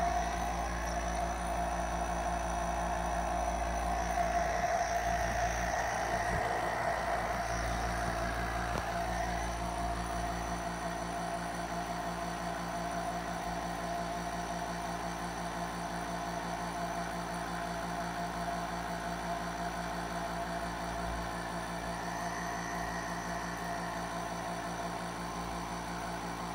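A nebulizer compressor hums steadily.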